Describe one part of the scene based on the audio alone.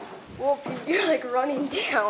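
A man walks down creaking wooden stairs.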